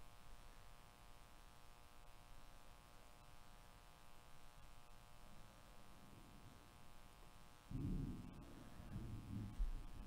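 Cards slide and shuffle against each other.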